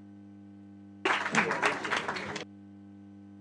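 An audience applauds briefly.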